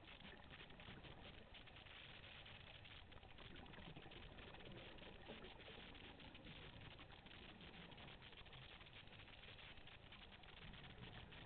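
Water rushes and crackles steadily underwater, muffled and close.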